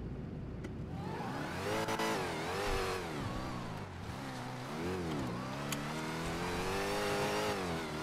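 A car engine revs up and down as the car accelerates.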